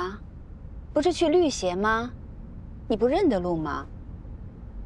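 A second young woman answers calmly inside a car.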